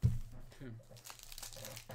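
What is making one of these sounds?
Cards shuffle and slide against each other.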